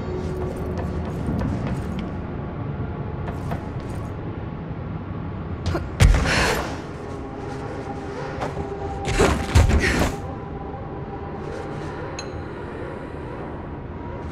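Footsteps run across a hard metal floor.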